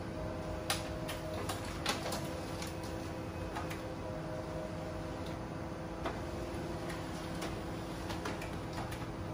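A printer clicks and knocks now and then.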